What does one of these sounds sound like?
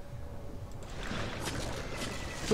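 A shark bites down with a wet crunch.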